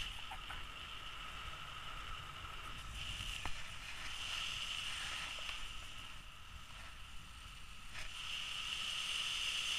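Wind rushes and buffets loudly past in open air.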